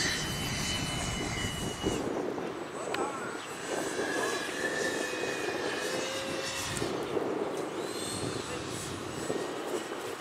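A small jet engine whines steadily as a model plane rolls along a runway.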